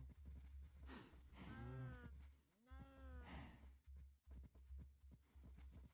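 Cows moo loudly nearby.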